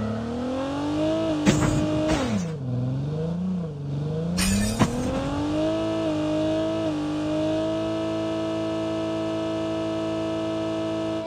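A car engine hums steadily, rising and falling in pitch as it revs.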